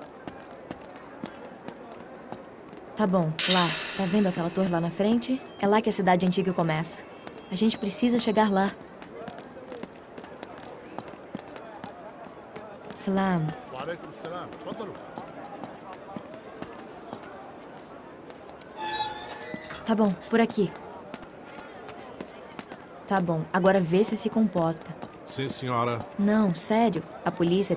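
Footsteps tread steadily on stone paving.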